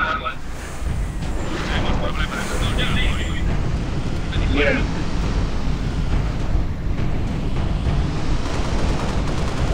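A vehicle engine rumbles steadily.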